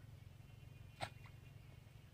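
A fishing lure plops into calm water nearby.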